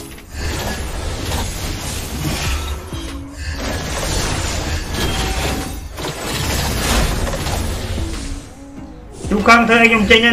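Video game combat effects whoosh and crash in quick bursts.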